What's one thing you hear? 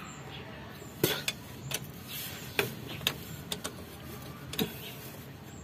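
A wrench clicks against a metal bolt.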